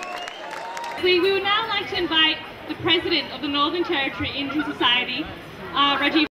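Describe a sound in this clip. A young woman speaks clearly into a microphone, heard through loudspeakers.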